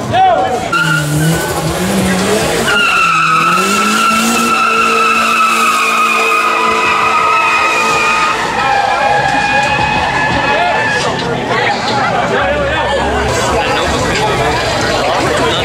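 A car engine revs nearby.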